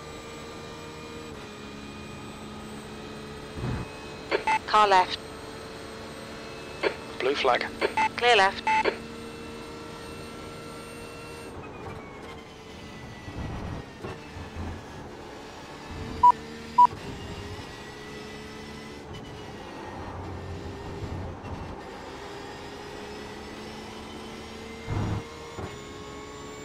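A racing car engine drones steadily, shifting pitch as it speeds up and slows down.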